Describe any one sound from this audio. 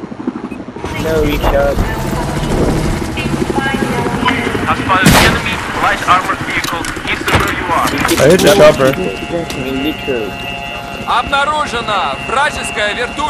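Gunfire cracks sharply.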